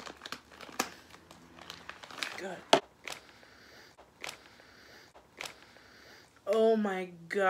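A plastic wrapper crinkles and rustles close up.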